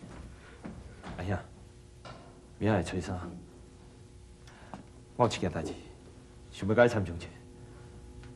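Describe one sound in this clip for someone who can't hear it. A second man speaks calmly and earnestly, close by.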